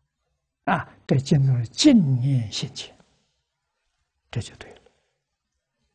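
An elderly man speaks calmly and warmly into a close microphone.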